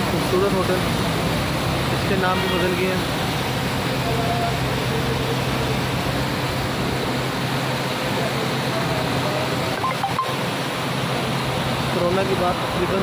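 A truck engine idles nearby with a steady low hum.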